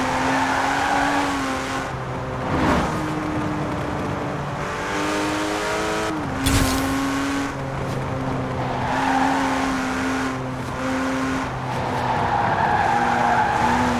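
Tyres screech on asphalt as the car drifts.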